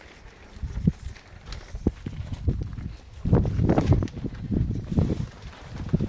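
Plastic bags rustle as they are carried.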